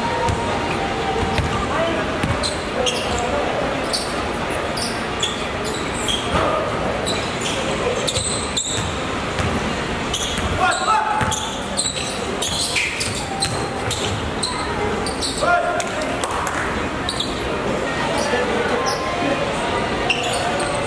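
Sneakers squeak on a court floor in a large echoing hall.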